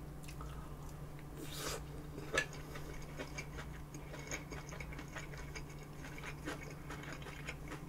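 A woman chews food noisily close to a microphone.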